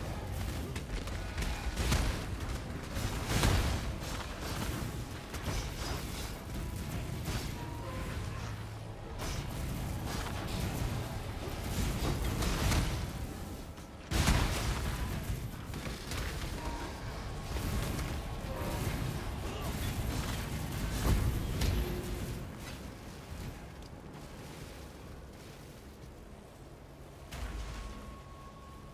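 Magic blasts crackle and boom in a game.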